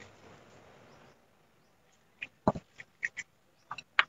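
A ceramic bowl is set down on a stone table with a soft knock.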